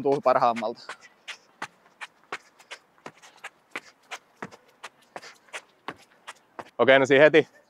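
Footsteps tap on a running track.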